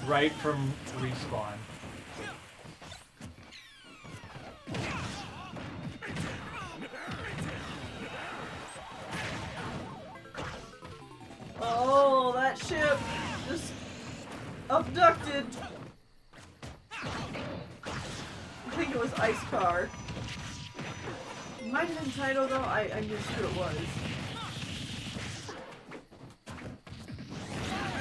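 Fighting sounds of punches, blasts and explosions crash again and again.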